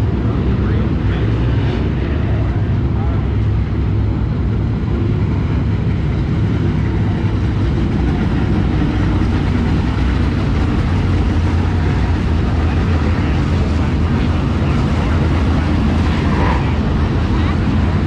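Race car engines roar loudly and steadily.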